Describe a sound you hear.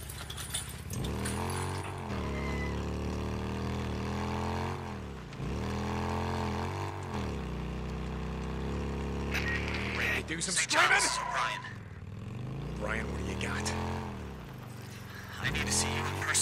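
A motorcycle engine rumbles and revs up and down as it rides.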